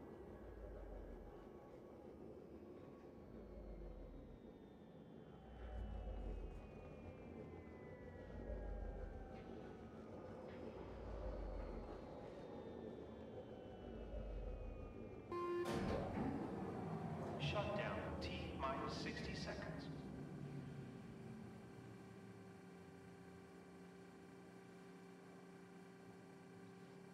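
A low electric hum drones steadily.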